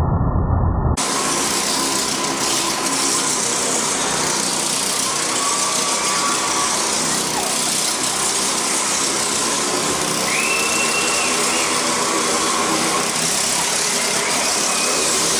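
Motorcycle engines roar loudly as they circle round and round, echoing in an enclosed space.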